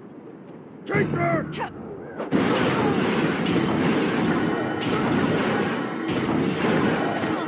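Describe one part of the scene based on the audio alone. Magic blasts burst and crackle loudly.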